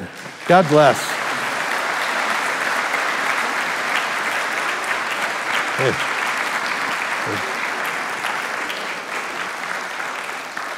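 A congregation applauds.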